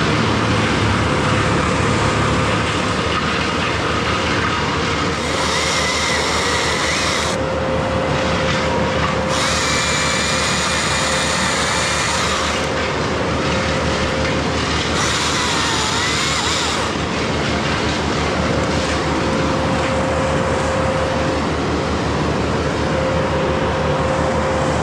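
A chainsaw engine runs loudly and close by.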